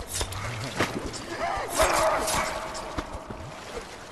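A blade strikes a creature with heavy, wet thuds.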